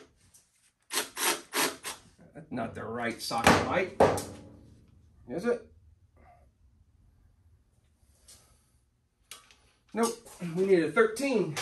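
Metal tools clink and tap.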